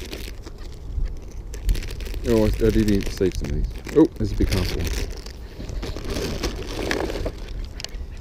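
A plastic snack packet crinkles as hands tear it open.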